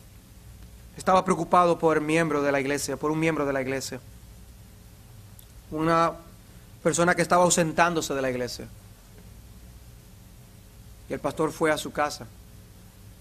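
An older man speaks calmly into a microphone, with pauses.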